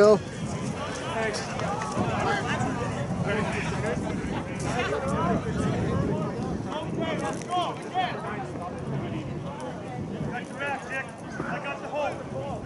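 Players shout and call to each other across an open field outdoors.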